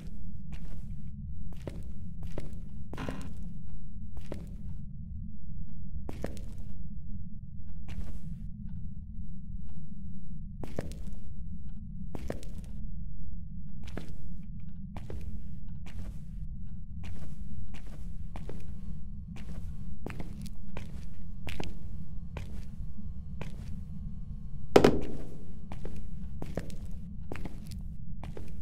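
Footsteps walk slowly and steadily on a hard floor.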